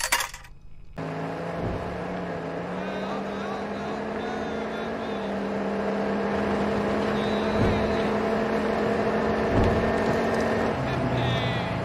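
A pickup truck's engine hums as the truck drives along.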